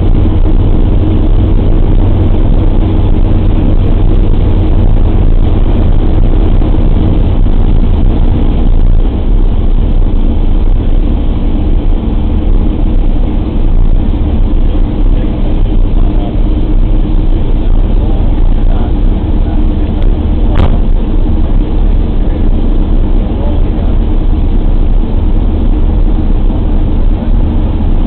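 The four radial piston engines of a bomber drone loudly, heard from inside the fuselage.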